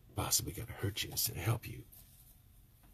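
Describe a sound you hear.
An older man speaks with emotion close by.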